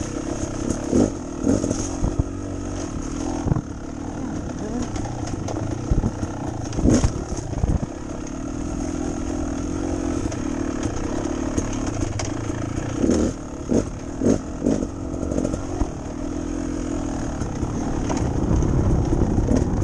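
A dirt bike engine hums and revs steadily up close.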